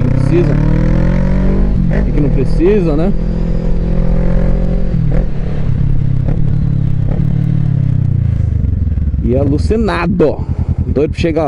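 A motorcycle engine hums steadily and slows down as it brakes.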